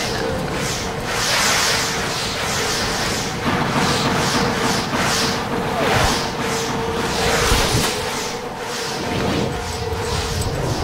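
A rushing wind whooshes in repeated swirling gusts.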